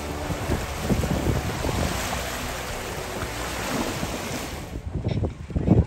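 Small waves lap and splash on a sandy shore.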